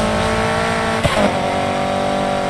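A car engine shifts gear with a brief dip and rise in pitch.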